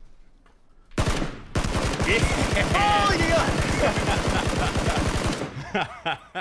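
A rifle fires rapid automatic bursts.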